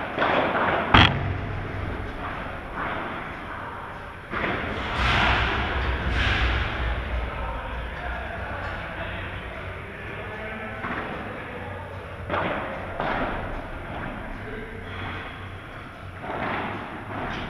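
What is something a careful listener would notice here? Padel rackets strike a ball with sharp pops.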